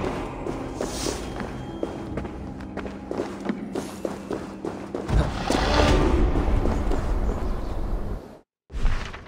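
Footsteps tap on stone floors.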